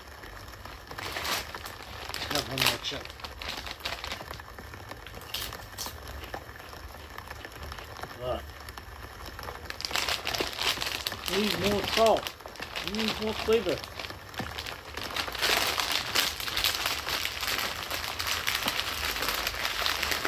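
A crisp bag crinkles and rustles.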